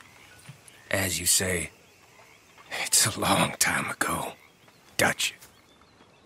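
An older man answers in a rough, tired voice, close by.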